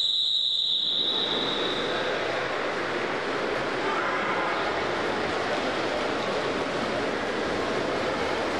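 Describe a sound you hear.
Swimmers splash through the water in an echoing indoor pool.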